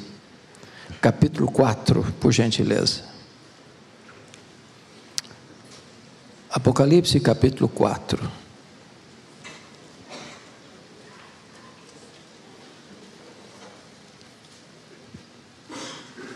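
A man speaks slowly through a microphone in a large echoing hall, with long pauses.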